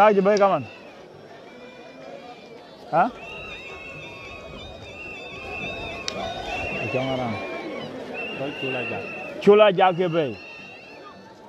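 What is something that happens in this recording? A man nearby lets out loud, ringing shouts.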